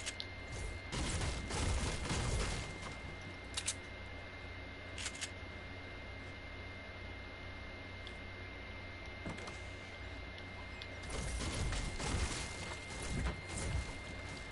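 A pickaxe strikes and smashes wooden objects in quick blows.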